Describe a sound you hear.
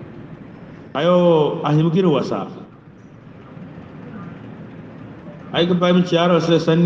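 A man chants with feeling into a microphone, heard through a loudspeaker.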